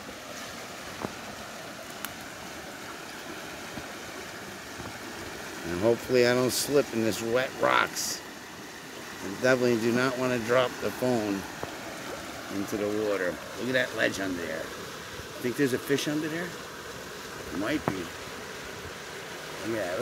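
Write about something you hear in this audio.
A river rushes steadily over rapids outdoors.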